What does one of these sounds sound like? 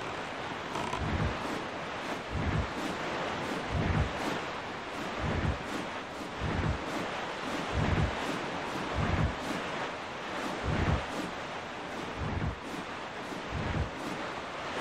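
Waves thump against a boat's hull in regular low bumps.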